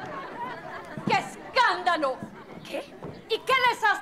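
A woman on stage cries out dramatically.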